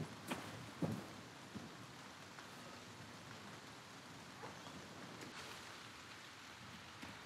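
A fire crackles and roars steadily.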